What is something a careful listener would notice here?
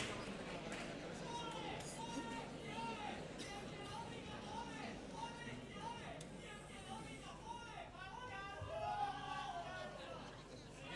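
A male chorus sings together on stage, heard from across a hall.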